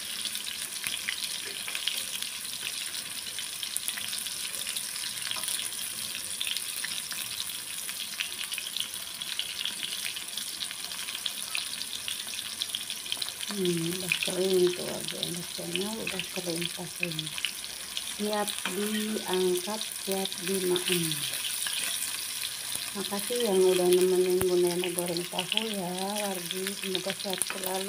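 Oil sizzles and crackles steadily in a pan.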